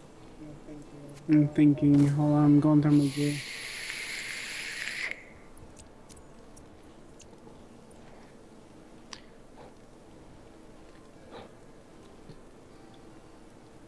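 A magic spell crackles and flashes with a bright hiss.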